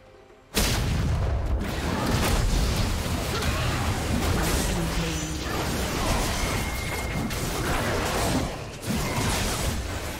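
Magic blasts and impacts crackle rapidly in a busy fight.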